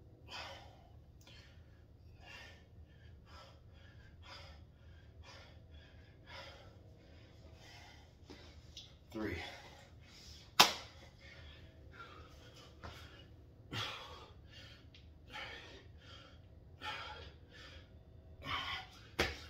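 A man breathes hard in short, rhythmic bursts while exercising.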